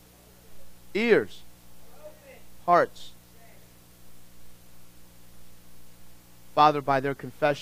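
A man preaches with animation into a microphone, speaking in short bursts with pauses.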